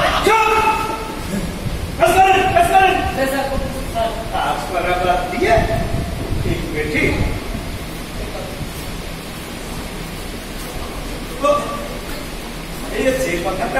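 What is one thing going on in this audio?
Men talk loudly in turn in a large echoing hall.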